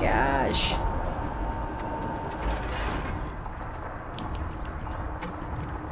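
A deep electronic rumble drones steadily throughout.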